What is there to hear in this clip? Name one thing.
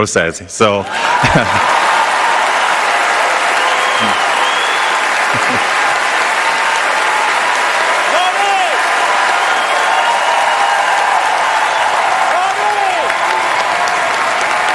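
A large crowd applauds loudly and steadily in a big hall.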